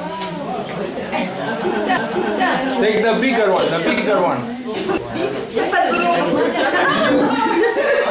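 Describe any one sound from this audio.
Small glass jars clink on a table.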